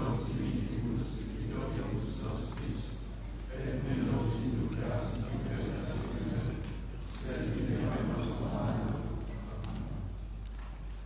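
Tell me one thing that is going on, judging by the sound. A man prays aloud in a calm voice, echoing in a large stone hall.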